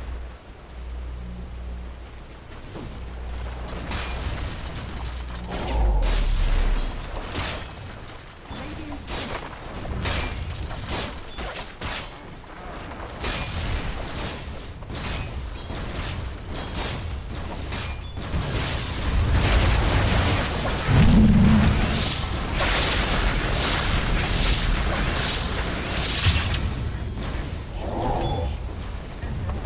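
Fantasy battle sound effects of weapons and spells clash in quick bursts.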